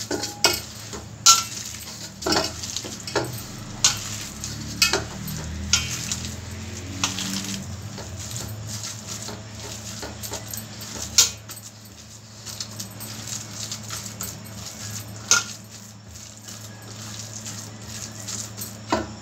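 Hands knead crumbly dough in a metal bowl, with squishing and rustling.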